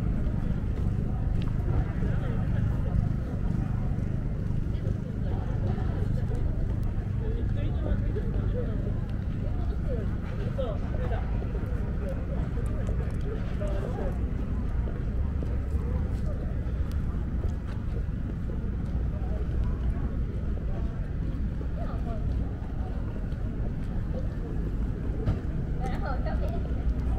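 People chatter faintly in the distance outdoors.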